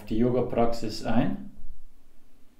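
A man speaks calmly close to a microphone, then falls silent.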